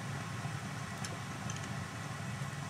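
Small metal bicycle parts click faintly under a tool.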